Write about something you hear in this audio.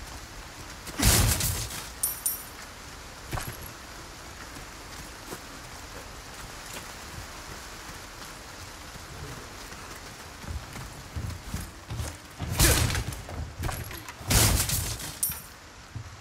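A wooden crate is smashed open.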